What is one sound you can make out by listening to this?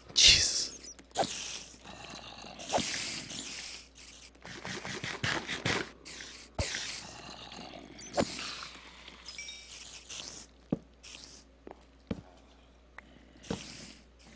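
Sword blows land with sharp thumps.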